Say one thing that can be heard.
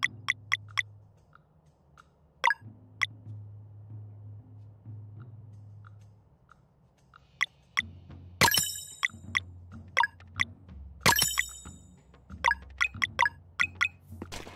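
Menu cursor clicks tick quickly and sharply.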